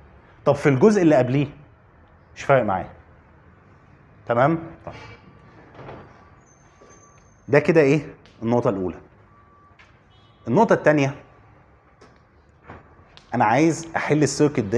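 A man lectures calmly in short phrases with pauses, close by.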